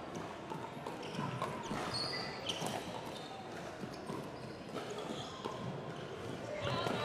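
Sneakers squeak on a hard indoor court.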